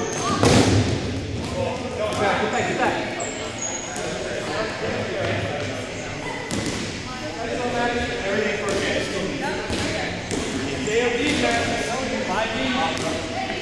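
Young people chatter and call out in a large echoing hall.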